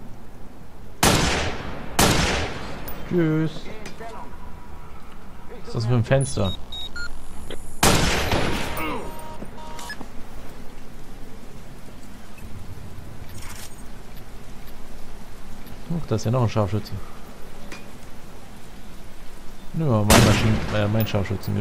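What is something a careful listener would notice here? A rifle fires sharp, loud shots that echo briefly.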